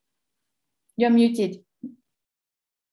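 A second woman speaks briefly over an online call.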